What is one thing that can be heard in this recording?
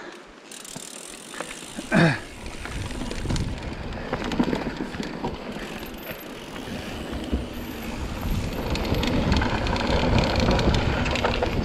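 Bicycle tyres roll and rattle over a rocky dirt trail.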